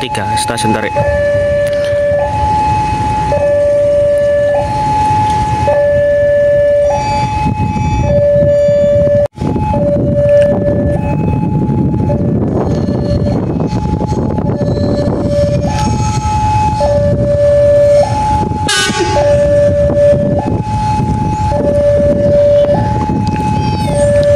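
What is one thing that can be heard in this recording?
A level crossing bell rings steadily in two alternating tones.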